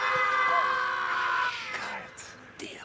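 A woman screams in distress.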